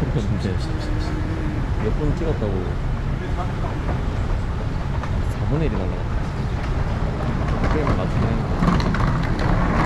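A moving walkway hums steadily.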